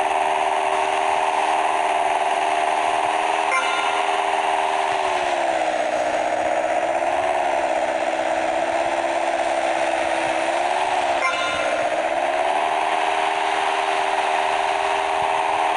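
A single-engine propeller plane drones in flight, its engine pitch dipping and rising.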